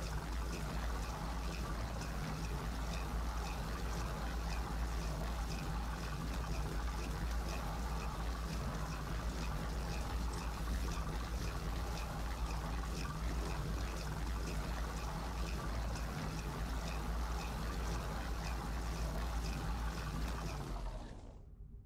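A machine hums and whirs steadily, then stops.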